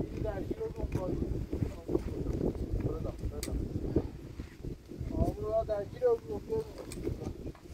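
Two young men talk nearby outdoors.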